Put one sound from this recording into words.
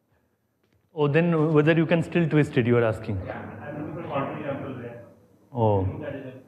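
A man lectures loudly to a class.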